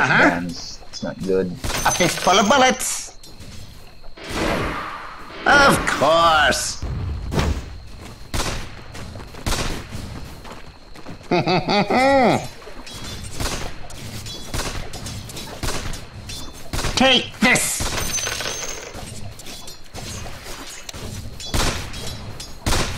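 Fantasy battle sound effects clash and crackle in a video game.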